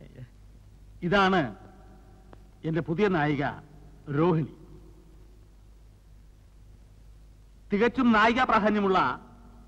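A man speaks into a microphone, heard through a loudspeaker.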